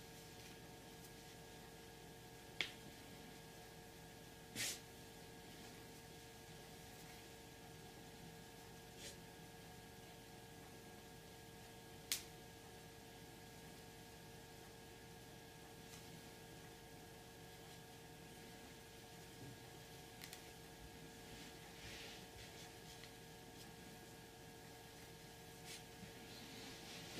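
Hands rustle through long hair close by.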